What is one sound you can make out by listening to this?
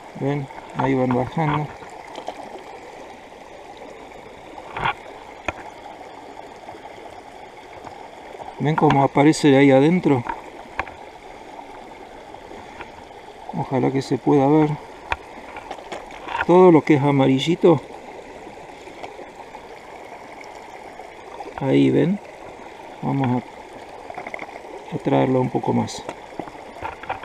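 Water sloshes gently in a plastic pan.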